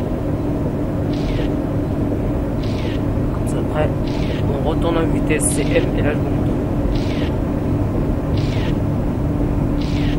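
A train engine rumbles steadily.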